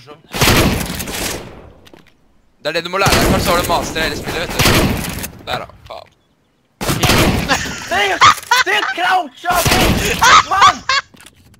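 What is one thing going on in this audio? A shotgun fires loud blasts, each one echoing away.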